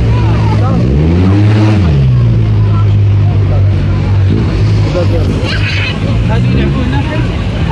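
A children's ride plays loud electronic music.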